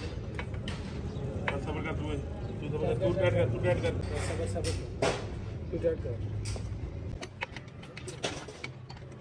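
Metal parts clink and tap.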